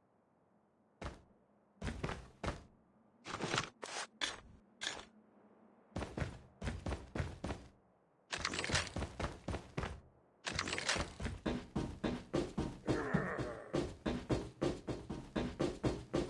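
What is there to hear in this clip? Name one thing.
Footsteps tap quickly on a hard floor and wooden stairs.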